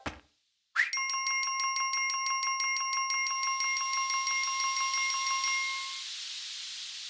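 A game's score counter ticks up rapidly with bright chiming beeps.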